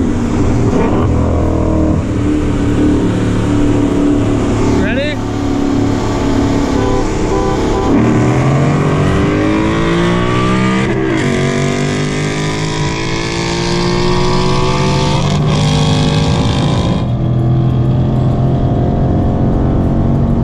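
A powerful car engine roars loudly up close, rising in pitch and dropping sharply at each gear change.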